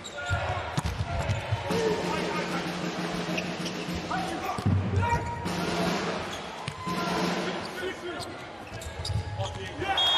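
A volleyball is struck hard with a slap.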